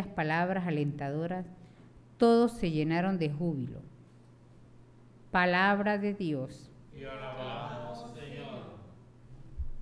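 A woman reads out calmly through a microphone in a room with a slight echo.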